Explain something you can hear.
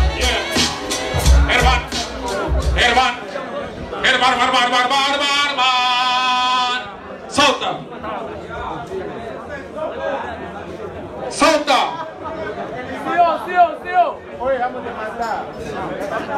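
A crowd of young men shouts and cheers in a large echoing hall.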